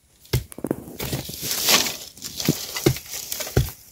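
Dry sticks crackle and snap as they are piled up.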